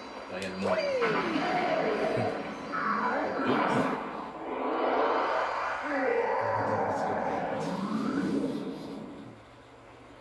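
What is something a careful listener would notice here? A deep monster growls and roars from a television speaker.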